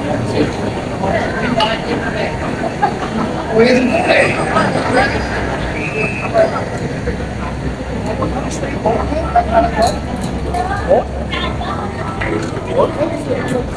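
A busy crowd chatters outdoors, with many voices of men and women mixing nearby.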